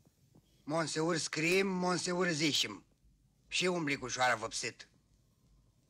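A man speaks loudly and theatrically.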